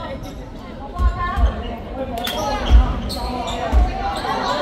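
A basketball bounces on a wooden floor in a large echoing hall.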